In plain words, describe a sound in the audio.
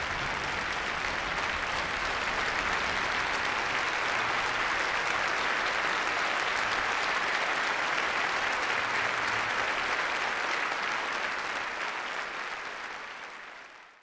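A large crowd applauds loudly in a big echoing hall and the applause slowly fades away.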